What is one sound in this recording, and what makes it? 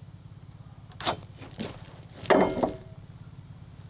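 A metal square taps and knocks against wooden boards.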